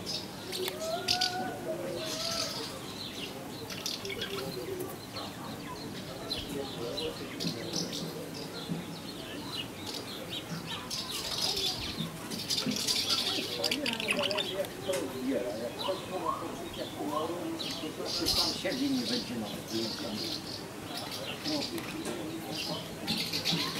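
A small bird twitters and chirps close by.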